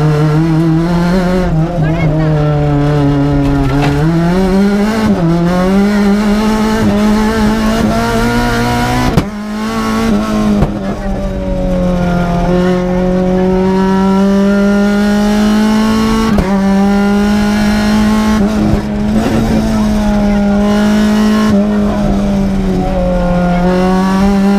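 A rally car engine roars loudly from inside the cabin, revving up and down through the gears.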